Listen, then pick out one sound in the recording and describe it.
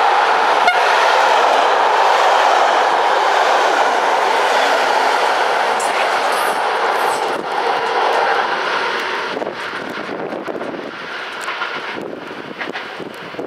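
A train's wheels clatter over rail joints.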